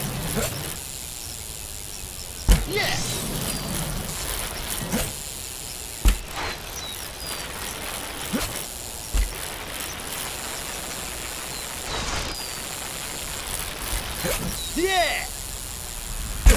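Bike tyres roll and crunch over a dirt trail.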